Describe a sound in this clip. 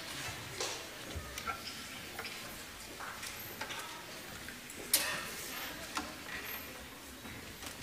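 Musicians shuffle and knock chairs and stands on a stage.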